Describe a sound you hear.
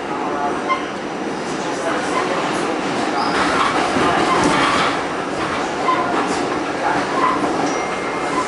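A subway train rumbles and rattles loudly through a station.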